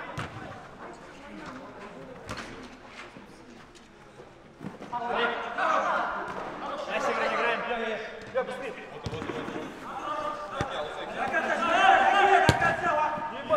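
A football is kicked with sharp thuds in an echoing hall.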